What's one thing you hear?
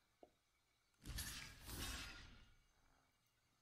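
A whooshing magical sound effect swells and fades.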